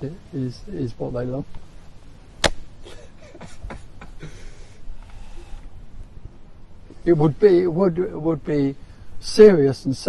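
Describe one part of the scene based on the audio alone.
An elderly man talks with animation close to a microphone.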